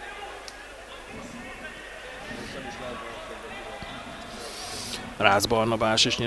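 A crowd chants and cheers from stadium stands.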